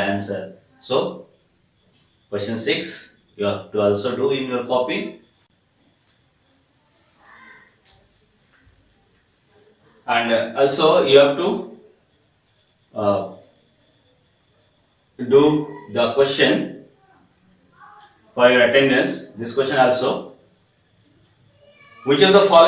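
A middle-aged man speaks calmly and clearly into a nearby microphone, pausing between phrases.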